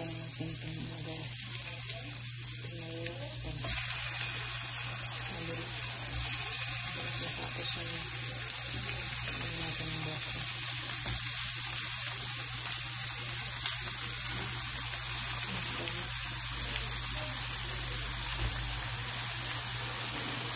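Tomato halves drop onto a sizzling pan with louder spitting.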